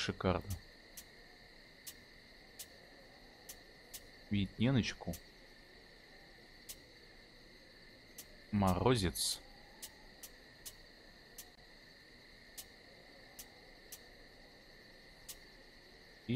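Soft interface clicks tick at a steady, slow pace.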